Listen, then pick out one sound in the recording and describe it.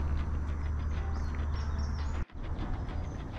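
A young girl's footsteps scuff on a stone path outdoors.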